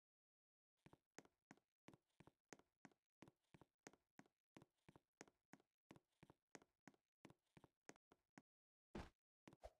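Quick footsteps patter at an even pace.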